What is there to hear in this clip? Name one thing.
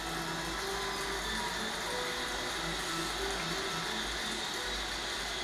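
A stadium crowd murmurs steadily through a television speaker.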